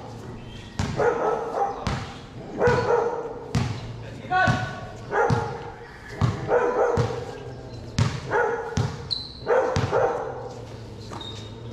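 A basketball bounces repeatedly on a hard court under a ringing roof.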